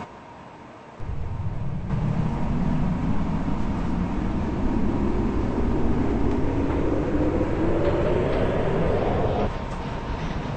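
A train's electric motor whines, rising steadily in pitch as the train speeds up.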